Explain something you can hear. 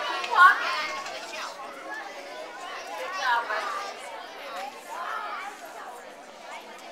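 Children chatter and call out nearby outdoors.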